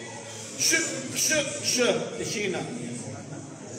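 A man speaks loudly into a microphone in a large echoing room.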